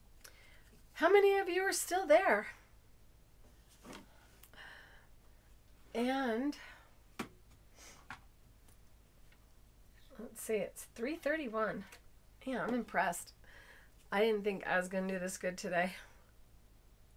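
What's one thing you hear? A middle-aged woman talks calmly and warmly into a close microphone, in short bursts with pauses.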